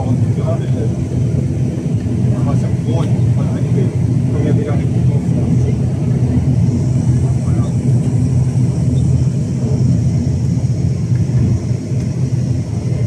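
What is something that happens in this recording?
A propeller engine drones loudly and steadily, heard from inside a plane's cabin.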